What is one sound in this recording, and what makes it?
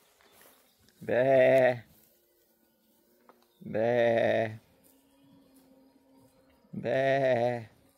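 Sheep bleat loudly close by, in long wavering calls.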